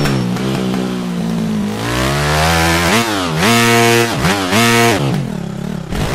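A motorbike engine revs up and down loudly, its pitch rising and falling.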